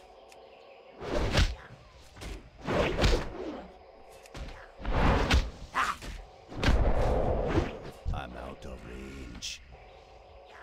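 A game character strikes a wooden target dummy with loud thumps and whooshes.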